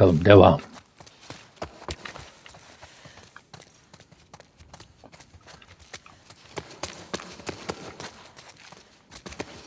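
Footsteps crunch over debris.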